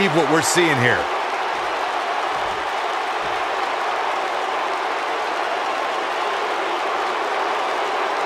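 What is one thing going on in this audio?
A large crowd cheers steadily in an echoing arena.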